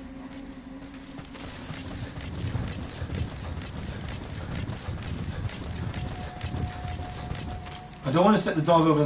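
Footsteps rustle through dry grass at a run.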